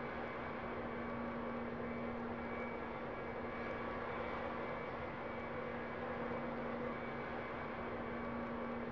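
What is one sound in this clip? A jet engine whines and rumbles steadily at idle.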